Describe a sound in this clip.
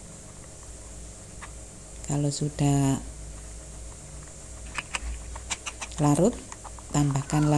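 A spoon stirs a thick paste in a glass bowl.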